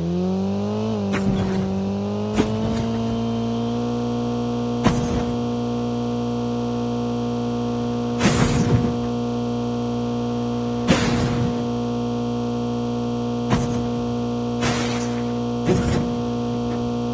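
Tyres bump and thud over rough ground.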